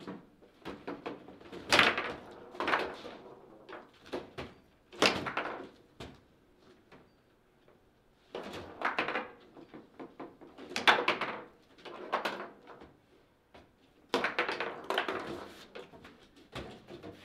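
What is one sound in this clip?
Table football rods rattle and knock as two players spin them.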